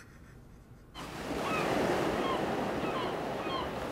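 Gentle waves wash over open water.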